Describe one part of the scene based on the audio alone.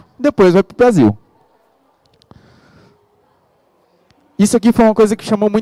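A man speaks with animation through a microphone.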